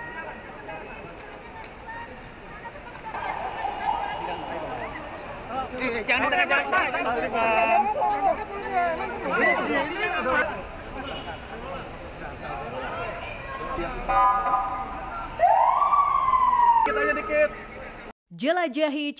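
A crowd of men talk and shout over each other close by.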